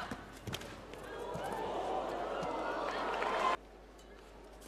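A crowd in a large hall cheers and applauds.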